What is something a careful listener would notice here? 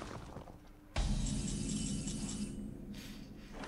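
A bright game chime rings out as a turn begins.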